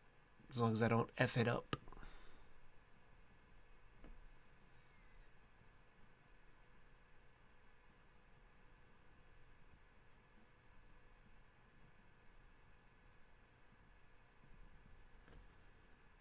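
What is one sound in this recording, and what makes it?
A felt-tip pen scratches softly across paper.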